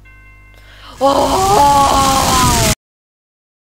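A man screams loudly into a microphone.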